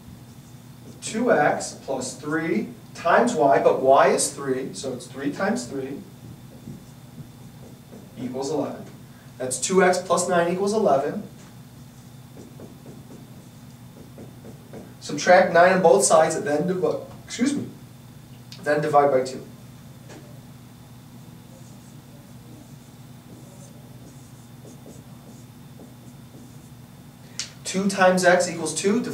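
A man explains calmly and clearly, close by, in a slightly echoing room.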